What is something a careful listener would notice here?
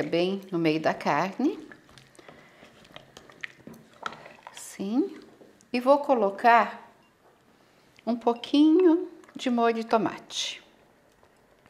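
A middle-aged woman speaks calmly and clearly, close to a microphone.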